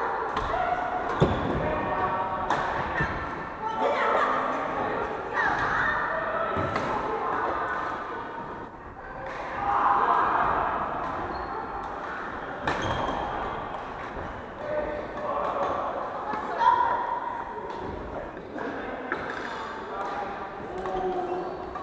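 Players call out and chatter across the hall.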